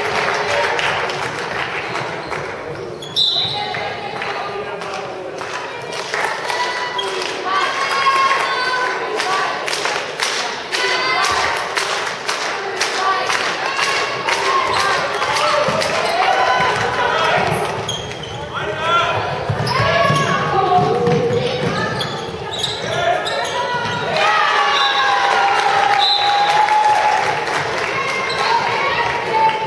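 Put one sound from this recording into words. Sports shoes squeak sharply on the floor.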